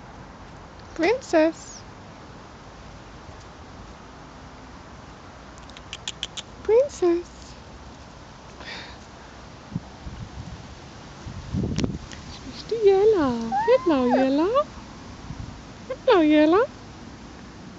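A puppy whines and yelps in short, high cries.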